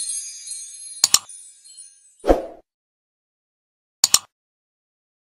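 A mouse clicks twice.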